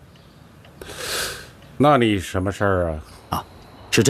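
An older man speaks through a telephone line.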